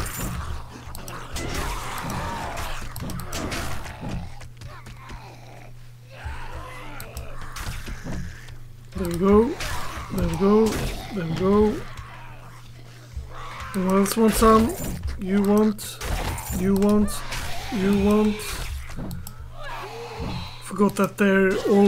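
An axe hits flesh with heavy, wet thuds.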